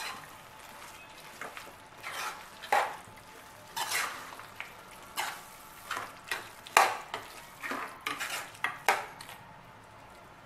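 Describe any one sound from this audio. A spatula scrapes and knocks against a metal pan as food is stirred.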